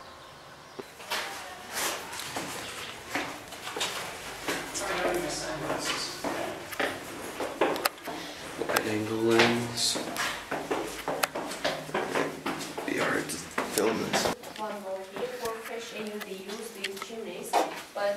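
Footsteps scuff on stone steps in a narrow, echoing passage.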